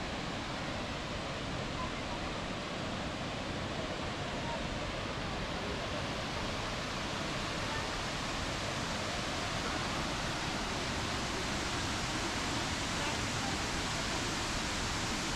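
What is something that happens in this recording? A waterfall roars loudly and steadily nearby.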